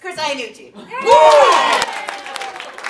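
A woman cheers loudly.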